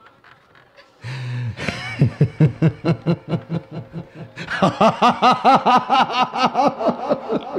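A man cries out in loud, rhythmic sobbing wails through a loudspeaker, growing higher and louder.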